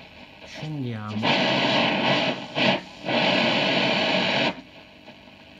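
An old radio hisses with loud static as its dial is turned.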